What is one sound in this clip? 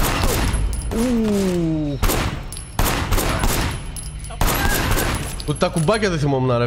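Gunshots bang loudly, one after another, with echoing booms.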